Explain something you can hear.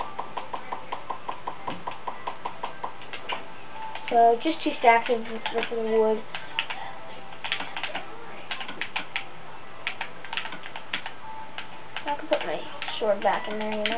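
Soft menu clicks tick quickly from a video game.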